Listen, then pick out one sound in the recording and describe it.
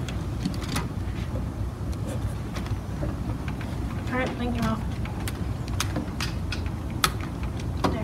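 A plastic toy robot clicks and knocks as hands handle it.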